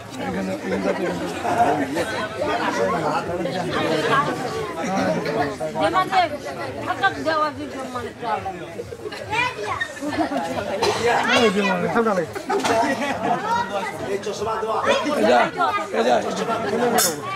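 A crowd of men and women talk and call out loudly all around.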